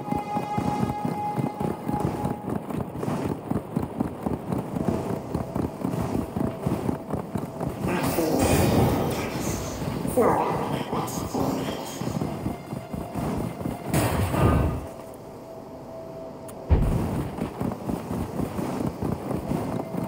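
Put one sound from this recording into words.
A horse's hooves gallop quickly over the ground.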